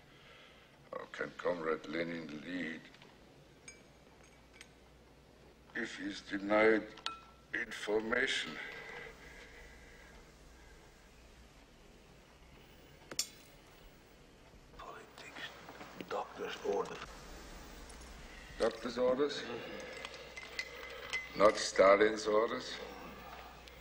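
An elderly man speaks slowly and hoarsely.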